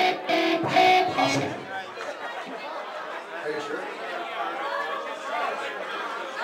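An electric guitar plays loudly.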